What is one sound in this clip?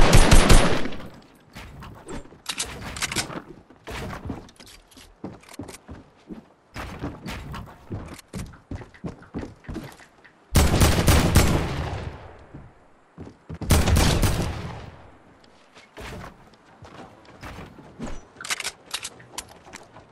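Wooden walls and ramps are built with quick knocking thuds.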